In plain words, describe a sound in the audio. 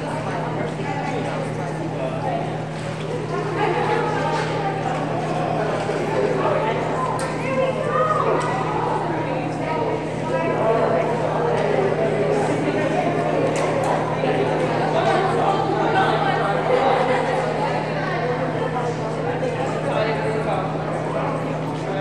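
Many people talk at once in a large echoing hall.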